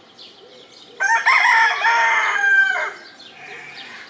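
A rooster crows loudly nearby.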